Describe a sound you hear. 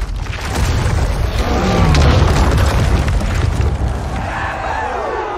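Heavy stone crashes down and rubble tumbles with a deep rumble.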